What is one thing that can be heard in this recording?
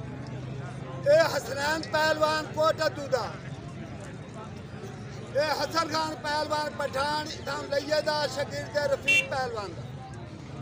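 A man calls out loudly with animation.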